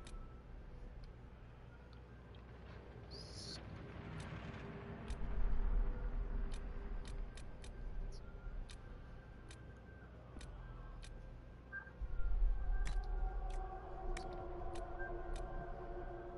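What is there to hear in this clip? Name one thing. Short soft clicks tick as menu options change.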